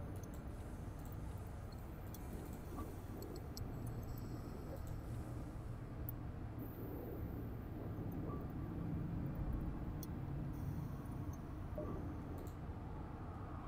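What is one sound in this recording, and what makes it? A low spaceship engine hum drones steadily.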